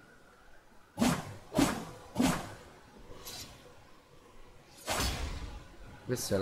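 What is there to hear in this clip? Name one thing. A sword swishes sharply through the air several times.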